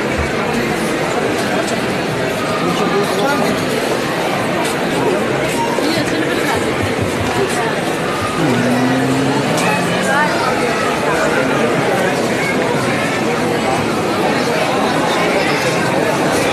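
A crowd of people chatter in a large indoor hall.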